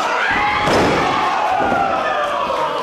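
A heavy body slams onto a wrestling mat with a loud thud.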